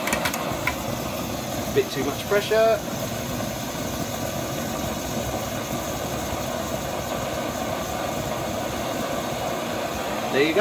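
A stove's flame roars steadily.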